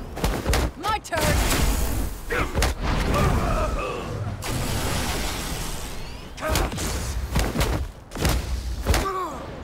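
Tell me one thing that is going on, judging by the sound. Punches and kicks thud in quick succession.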